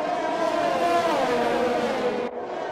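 A racing car engine's pitch drops as it brakes into a corner.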